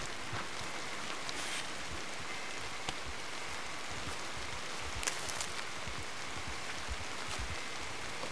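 Grass rustles close by.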